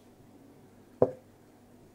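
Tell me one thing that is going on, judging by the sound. A laptop key is tapped with a sharp click.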